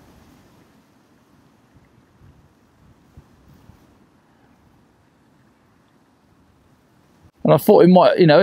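Water laps gently against a bank.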